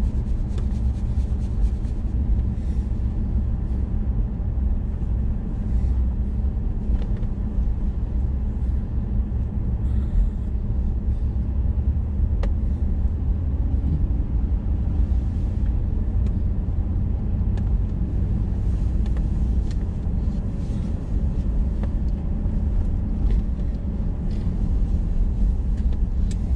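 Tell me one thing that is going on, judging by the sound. Tyres crunch and rumble over a gravel road.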